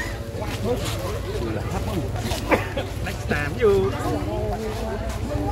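A man speaks cheerfully close by.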